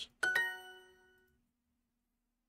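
A bright electronic chime rings.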